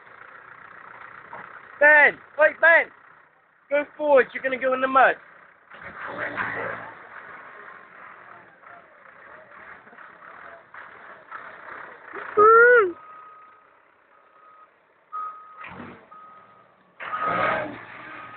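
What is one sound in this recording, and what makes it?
A tractor engine runs nearby.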